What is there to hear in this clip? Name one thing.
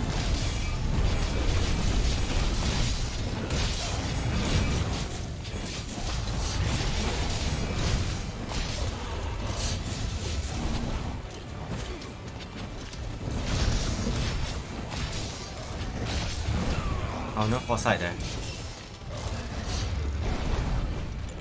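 A blade slashes and strikes with sharp impacts.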